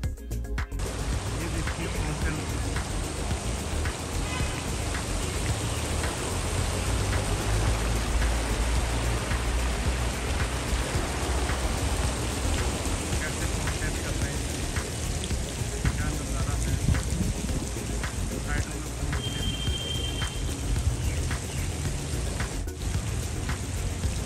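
A fountain splashes steadily into a pond.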